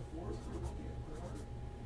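A pen scratches on a card.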